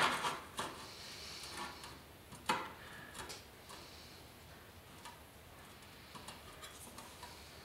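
A metal scribe scratches along a sheet of metal.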